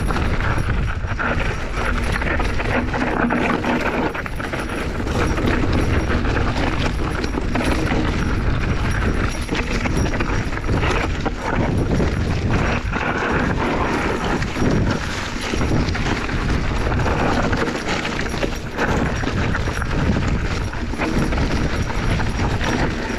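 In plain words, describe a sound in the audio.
Bicycle tyres crunch and rattle over a rocky dirt trail.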